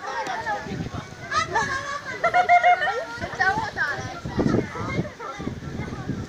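Children chatter and shout excitedly nearby, outdoors.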